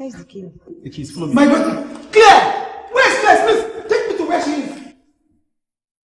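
A middle-aged woman shouts in distress.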